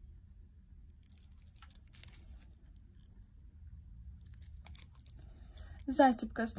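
A plastic wrapper crinkles softly.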